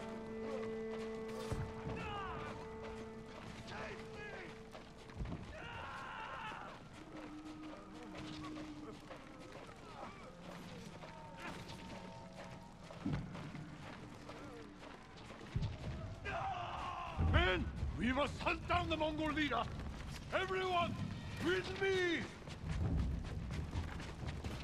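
Footsteps crunch on sand and gravel.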